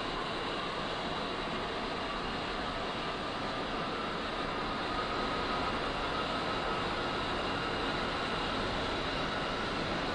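A jet engine whines and roars steadily close by.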